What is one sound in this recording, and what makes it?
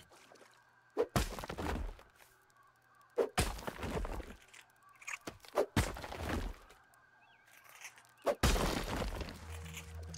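A tool strikes earth with dull, repeated thuds.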